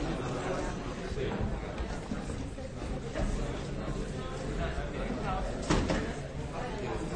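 Many people chatter at once in a large, echoing hall.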